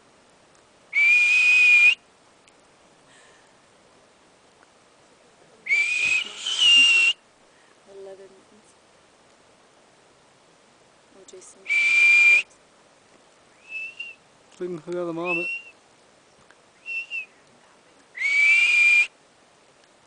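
A marmot gives loud, shrill whistles, one at a time with pauses between.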